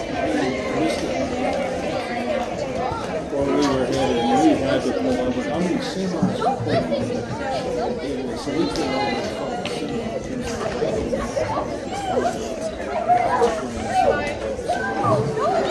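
Hands slap together in high fives.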